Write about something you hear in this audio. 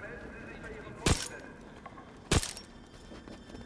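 A pistol fires sharp, loud shots.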